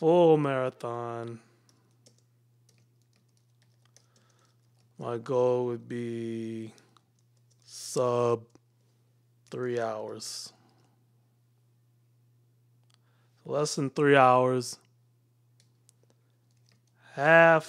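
A man speaks calmly and close into a microphone, in short phrases with pauses.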